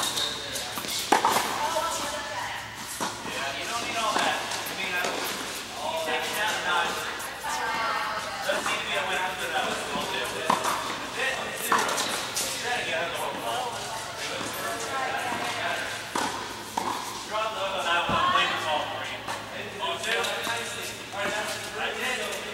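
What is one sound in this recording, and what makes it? Young women talk and call out across the courts.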